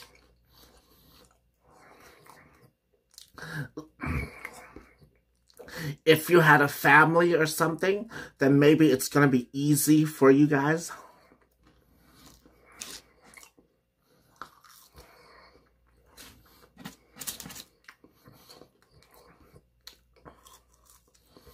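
A young man chews and crunches on fries.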